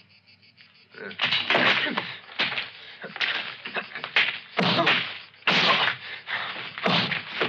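Two men scuffle with grunts and thumps.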